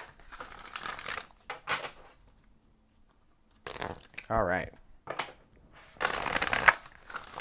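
A deck of cards is shuffled by hand, the cards riffling and slapping together.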